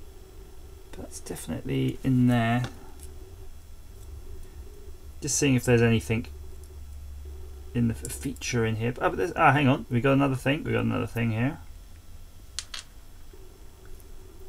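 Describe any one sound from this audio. Metal tweezers click softly against a small metal part.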